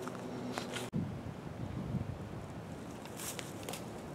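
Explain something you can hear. Feet shuffle on dry leaves.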